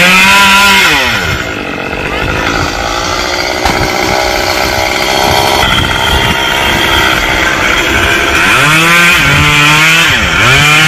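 A chainsaw engine revs and whines loudly.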